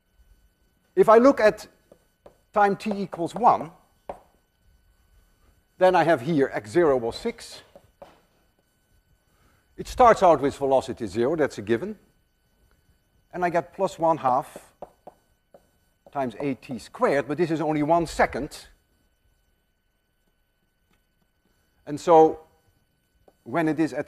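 An elderly man lectures calmly through a microphone, in short phrases with pauses.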